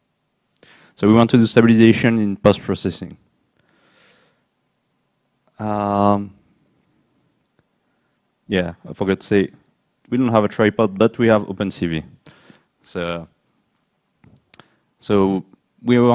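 A man speaks calmly into a microphone, heard through a loudspeaker in a hall.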